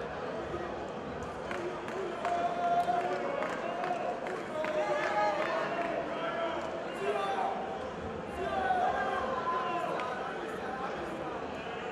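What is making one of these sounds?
A man speaks firmly to two others at close range.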